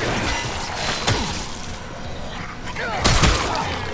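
A creature shrieks and snarls close by.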